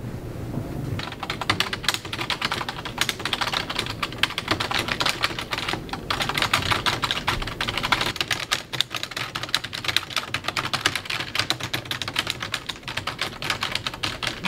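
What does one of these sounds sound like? Fingers type on a computer keyboard.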